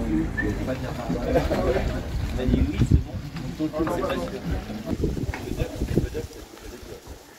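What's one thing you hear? Young men chat casually nearby.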